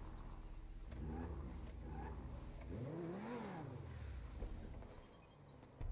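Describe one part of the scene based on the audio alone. A sports car engine revs and then idles.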